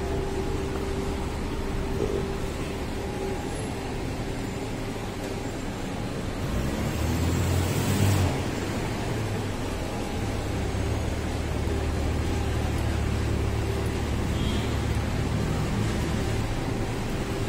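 Traffic hums steadily outdoors on a street.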